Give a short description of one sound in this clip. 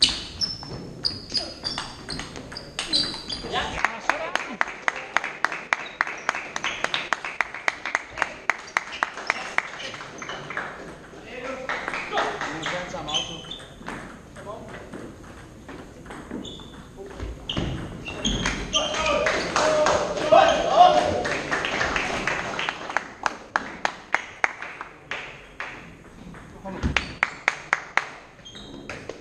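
Shoes squeak on the hall floor.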